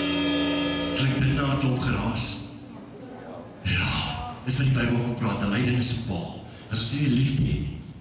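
A man speaks with animation through a headset microphone over loudspeakers.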